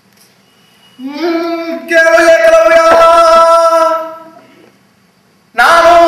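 A man calls out in long, loud, drawn-out cries.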